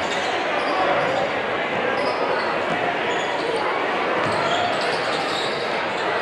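A basketball bounces on the hardwood floor.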